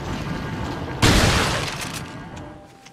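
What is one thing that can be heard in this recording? A shotgun fires a loud blast that echoes away.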